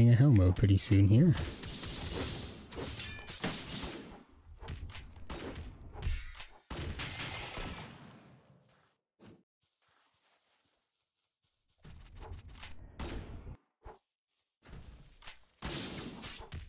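Magical blasts crackle and whoosh in quick bursts.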